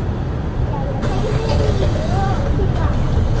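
A bus door hisses with a burst of air as it closes.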